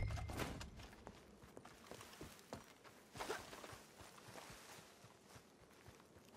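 Footsteps thud on wooden boards and then crunch over ground at a steady walking pace.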